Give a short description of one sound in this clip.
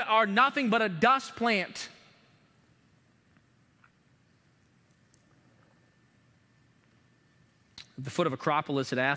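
A man speaks with emphasis into a microphone, pausing between phrases.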